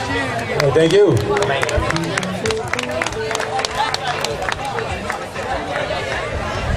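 A band plays music on an outdoor stage.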